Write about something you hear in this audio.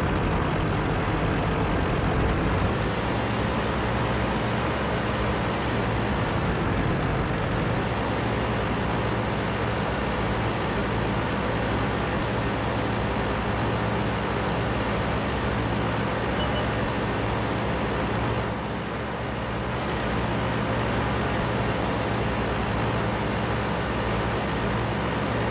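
A heavy tank's engine rumbles as the tank drives.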